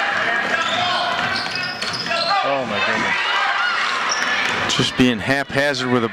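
A crowd of spectators cheers and shouts in an echoing gym.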